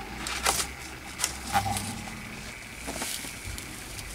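Paper rustles as it is lifted and tilted.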